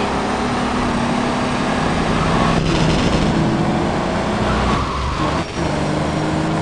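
A car engine hums steadily as a taxi drives along.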